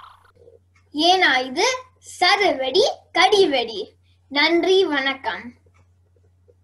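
A young boy speaks cheerfully and clearly into a microphone.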